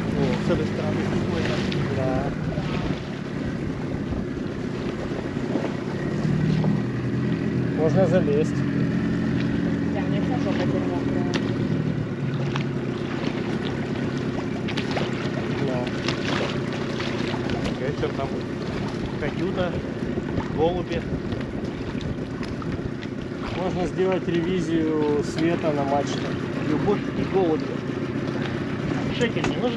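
Small waves slosh and splash against a hull.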